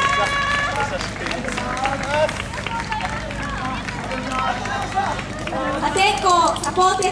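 A lively crowd chatters and calls out outdoors.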